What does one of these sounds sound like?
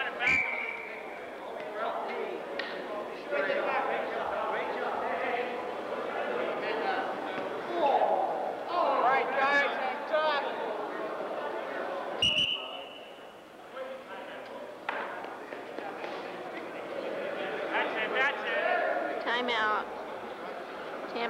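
A man shouts in a large echoing hall.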